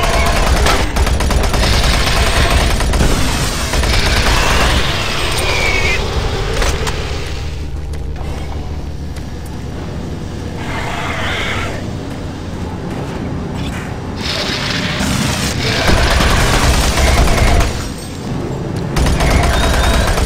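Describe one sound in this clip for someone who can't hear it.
A gun fires in loud, rapid bursts.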